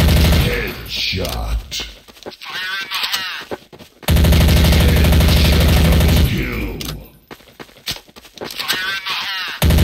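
A gun's magazine is reloaded with metallic clicks.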